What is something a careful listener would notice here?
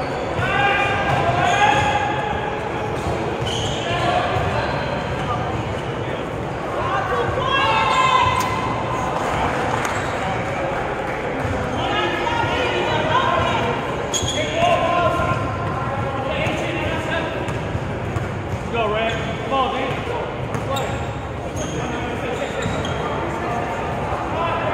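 Young men shout and call out nearby in a large echoing hall.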